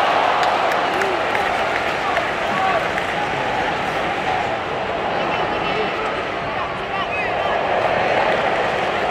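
A large stadium crowd roars and chants steadily in the open air.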